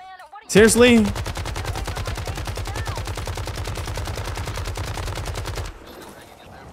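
A rifle fires in a fast, steady burst of shots.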